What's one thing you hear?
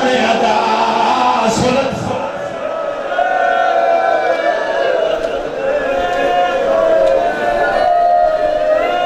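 A young man chants loudly into a microphone through loudspeakers.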